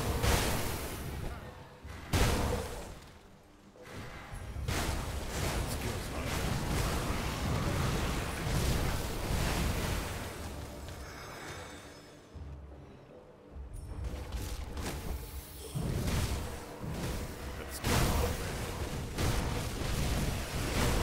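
Spells and weapons crash and burst in quick, noisy bursts of combat.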